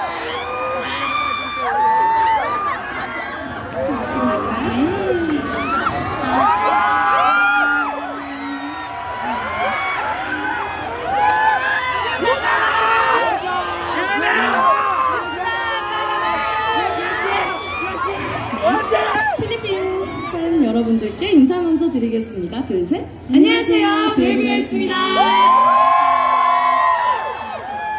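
Young women talk and sing into microphones over loudspeakers in a large echoing arena.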